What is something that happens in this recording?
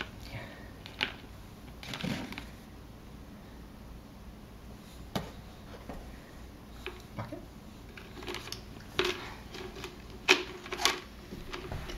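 A plastic bucket and ball knock and clatter.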